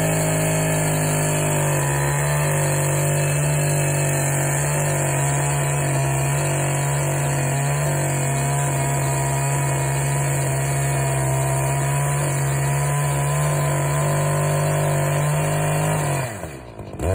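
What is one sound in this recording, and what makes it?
A chainsaw runs loudly and steadily, cutting through wood.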